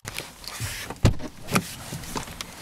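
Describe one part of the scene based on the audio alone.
A seatbelt buckle clinks as a hand handles it.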